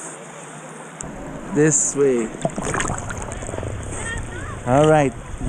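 River water splashes and gurgles close by.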